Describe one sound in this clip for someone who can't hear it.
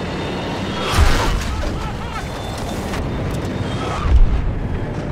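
Loud cannon blasts boom with a rolling echo.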